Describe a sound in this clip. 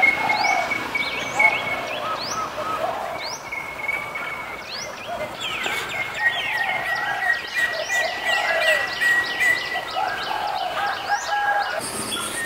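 Several birds call and whistle busily from the trees.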